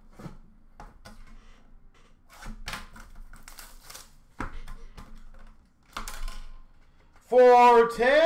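Plastic card packaging rustles and clicks in someone's hands.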